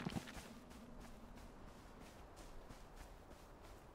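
Footsteps patter through grass.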